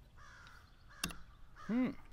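A chess piece clacks down on a board.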